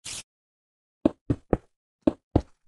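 Blocks are placed with short, soft thuds in a video game.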